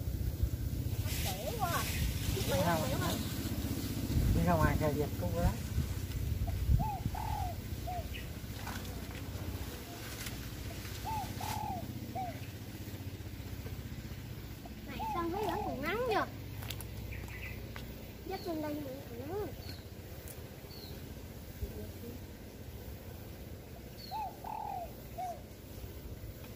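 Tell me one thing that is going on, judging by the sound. Young children talk and call out nearby.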